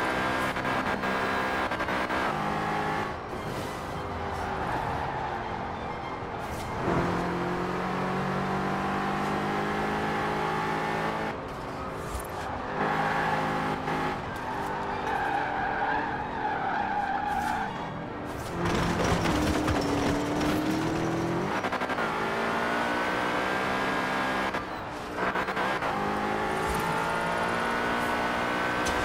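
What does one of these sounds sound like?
A car engine roars, rising and falling in pitch as the gears shift.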